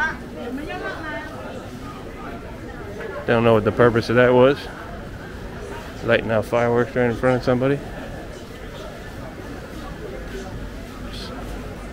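A crowd murmurs faintly in the background outdoors.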